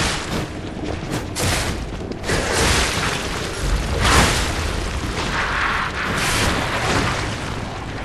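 Heavy weapon blows strike and squelch into a creature's flesh.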